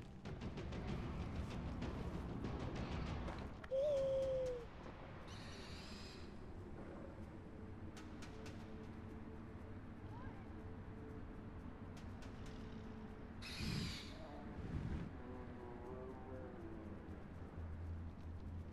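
Wind rushes past a gliding bird.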